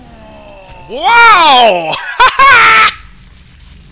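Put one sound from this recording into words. A loud magical burst whooshes and shimmers.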